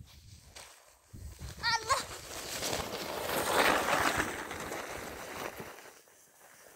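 A sled slides and scrapes over snow.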